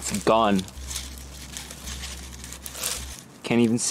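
Dry leaves rustle as a hand brushes through them.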